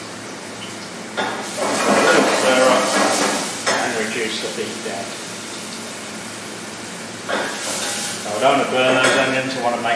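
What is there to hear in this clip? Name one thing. A spoon stirs and scrapes in a metal saucepan.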